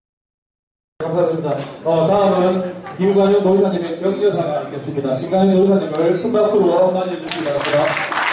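A man announces over a loudspeaker in a large hall.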